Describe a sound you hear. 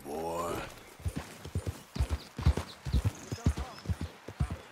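A horse's hooves thud steadily on the ground.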